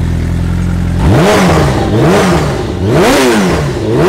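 A motorcycle engine revs up and down repeatedly.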